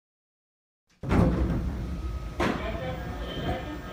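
A train door slides open.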